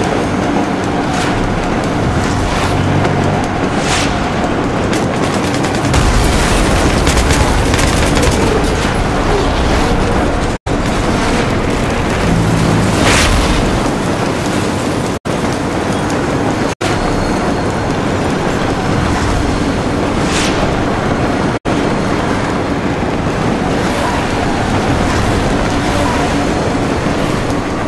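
A train rumbles loudly along through a tunnel.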